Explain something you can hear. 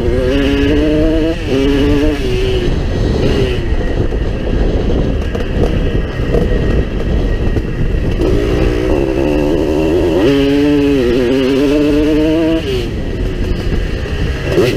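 Tyres rumble over a bumpy dirt track.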